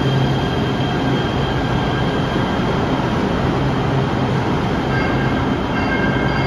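A train rumbles and hums as it pulls slowly out of an echoing station.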